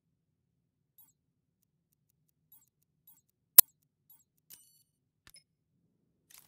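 Keypad buttons beep as a code is entered.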